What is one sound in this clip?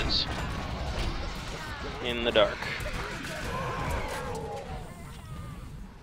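Blades clash and strike in a fast melee.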